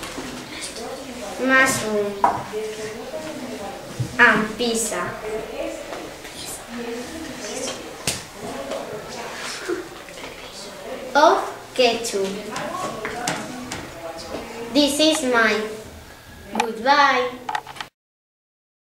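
A young girl talks calmly and clearly nearby.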